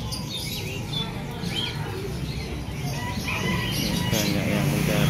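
Birds chirp and twitter nearby.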